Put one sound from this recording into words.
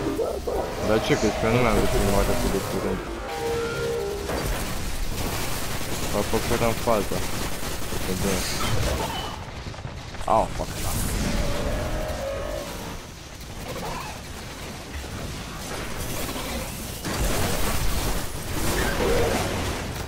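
Blasts and energy explosions burst loudly.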